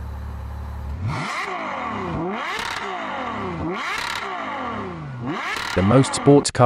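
A sports car engine revs up and down repeatedly with a loud howl.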